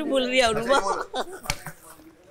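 Several young people talk with animation nearby.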